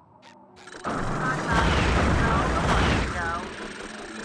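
Bubbles gurgle and burble underwater.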